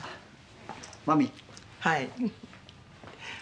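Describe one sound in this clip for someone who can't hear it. An older woman speaks with a laugh.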